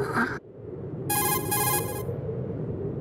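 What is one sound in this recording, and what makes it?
A radio call beeps with a sharp electronic chirp.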